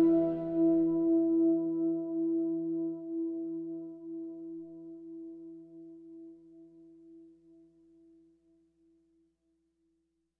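A string orchestra holds a long chord that slowly fades away.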